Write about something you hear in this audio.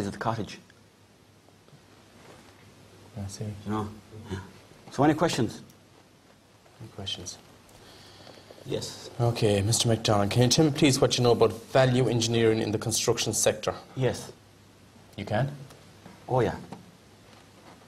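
A man speaks calmly and earnestly at close range.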